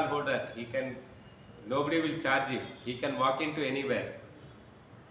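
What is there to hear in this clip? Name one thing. A man speaks calmly and expressively into a nearby microphone.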